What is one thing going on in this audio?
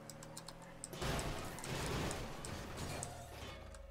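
A car crashes into a post with a scraping crunch.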